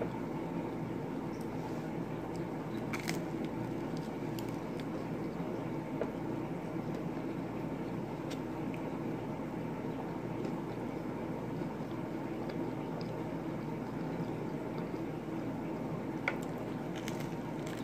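A young woman chews food with her mouth close by.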